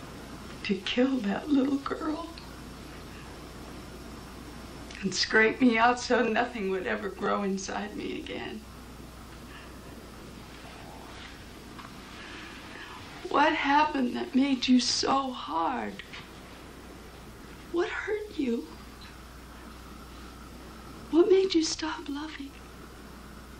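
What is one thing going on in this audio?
A woman speaks haltingly and with emotion, with long pauses.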